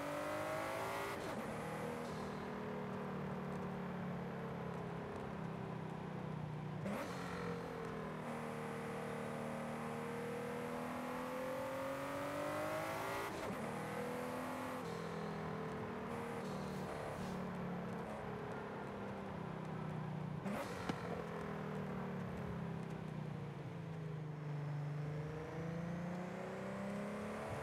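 A sports car engine roars steadily, revving up through the gears with brief drops at each gear change.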